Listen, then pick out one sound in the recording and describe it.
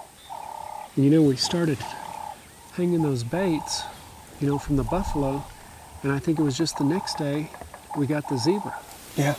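A middle-aged man speaks in a low, hushed voice close by.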